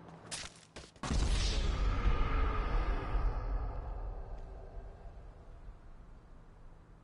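A loud explosion booms and slowly rumbles away.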